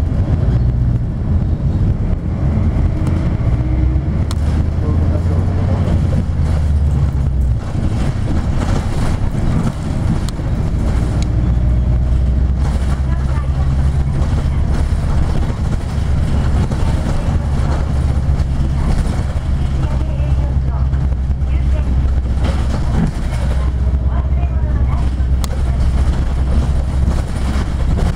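Tyres hum on wet pavement.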